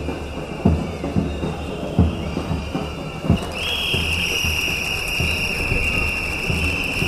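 A large crowd chants and murmurs outdoors.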